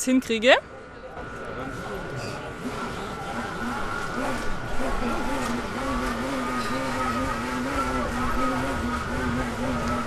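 A toy train's small motor hums steadily as it runs along its track.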